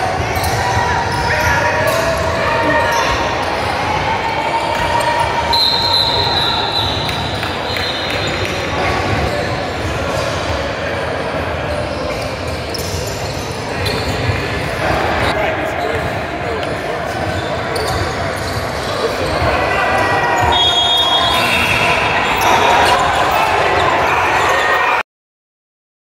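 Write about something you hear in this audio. Young players and onlookers call out and chatter, echoing in a large hall.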